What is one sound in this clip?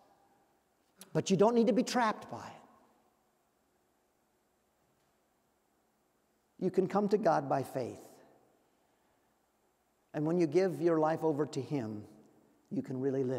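An elderly man preaches with emphasis through a microphone, pausing between phrases.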